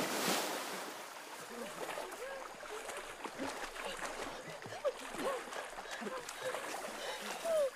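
Water splashes and sloshes as swimmers thrash about.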